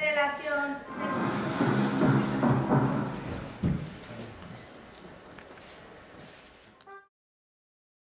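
A small group of musicians plays early string and wind instruments.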